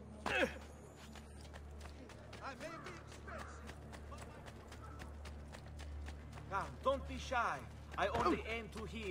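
Quick footsteps run over cobblestones.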